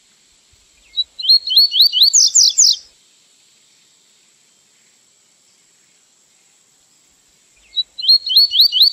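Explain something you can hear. A small songbird sings a quick, repeated series of high, sharp chirps.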